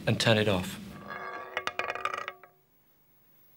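A roulette wheel spins with a rattling whir.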